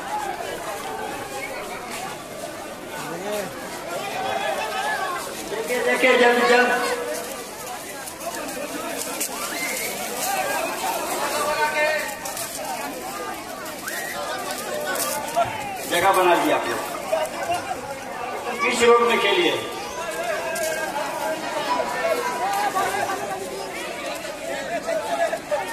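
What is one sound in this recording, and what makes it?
Fireworks crackle and pop on the street.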